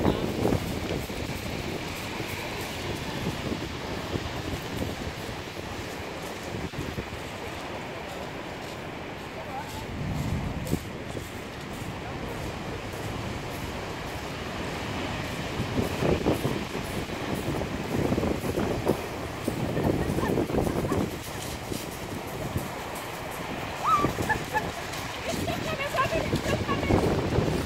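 Waves crash and roar on the shore.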